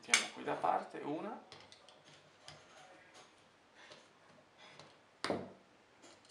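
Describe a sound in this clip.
A ratchet screwdriver clicks as it is turned.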